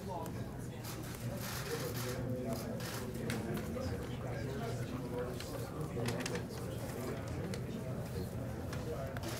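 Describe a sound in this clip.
A crowd murmurs and chatters throughout.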